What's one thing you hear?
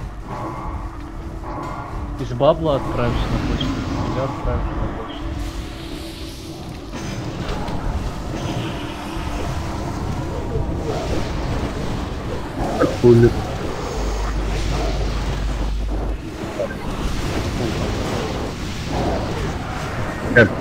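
Spell effects and combat sounds from a game clash and whoosh throughout.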